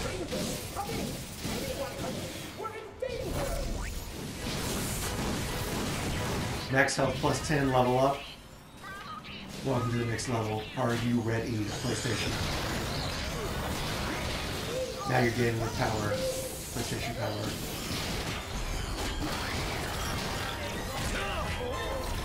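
Blasters fire in rapid bursts.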